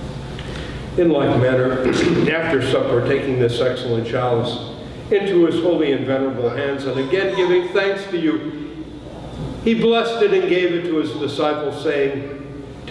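An elderly man prays aloud in a steady, chanting voice, heard in an echoing hall.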